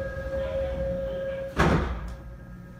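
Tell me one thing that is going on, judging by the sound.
Sliding train doors close with a thud.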